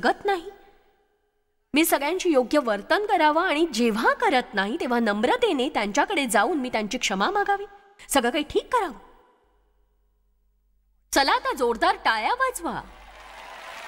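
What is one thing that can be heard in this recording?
A middle-aged woman speaks with animation through a microphone in a large hall.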